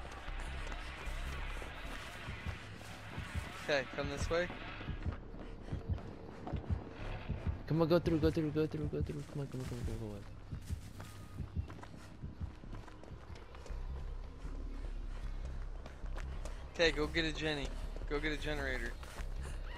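Footsteps run quickly over dirt and dry leaves.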